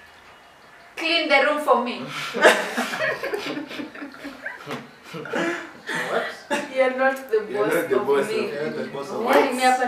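Young men and women laugh loudly together.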